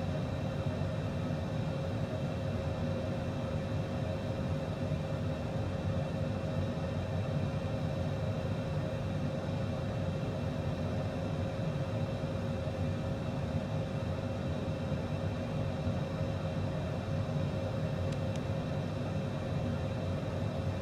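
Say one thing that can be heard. Jet engines hum and roar steadily.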